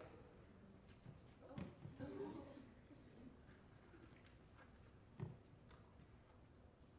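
Teenagers murmur and talk quietly in a large room.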